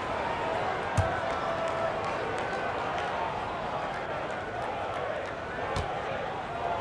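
A basketball bounces a few times on a wooden court.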